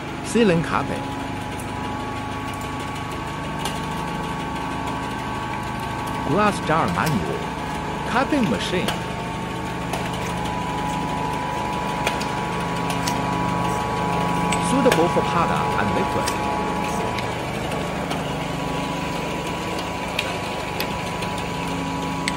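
A capping machine hums and whirs steadily.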